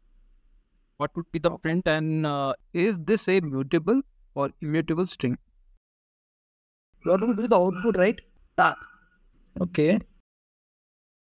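A young man speaks calmly over an online call, pausing now and then.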